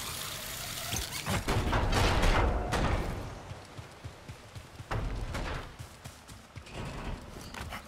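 Footsteps thud on stone and metal grating.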